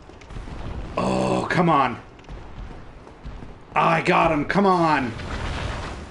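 A man talks excitedly into a microphone.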